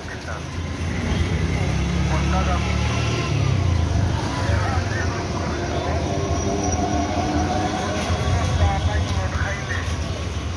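A small motor engine rumbles close by.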